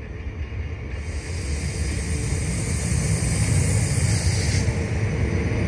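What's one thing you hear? An electric train motor whines as a train pulls away.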